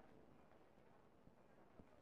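A man's footsteps climb stone stairs.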